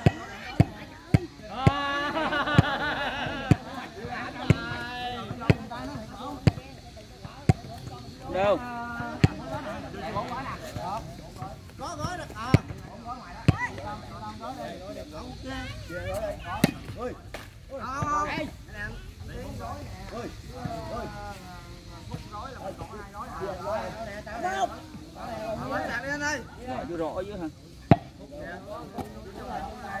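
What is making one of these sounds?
A crowd of men chatter and shout outdoors nearby.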